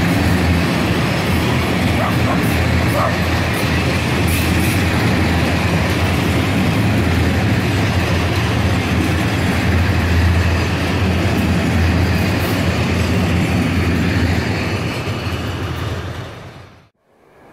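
A freight train rumbles and clatters loudly along the rails close by, then fades away.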